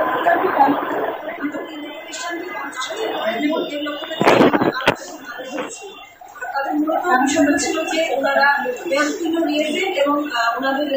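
A woman speaks calmly into microphones at close range.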